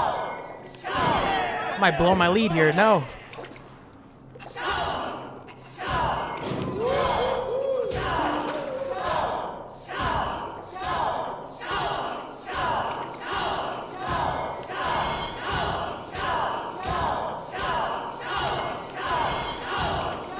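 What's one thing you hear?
A crowd of men chants and cheers to a steady, quick beat in a large echoing hall.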